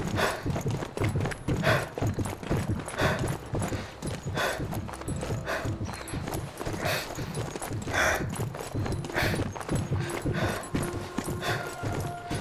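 Boots run quickly over cobblestones.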